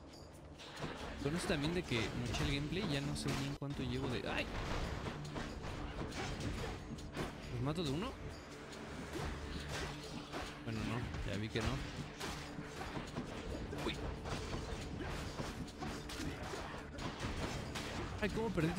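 Sharp magical blasts and hits crackle and burst in quick bursts.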